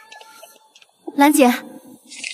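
A woman speaks sharply.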